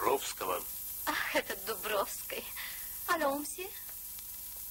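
A young woman speaks briefly.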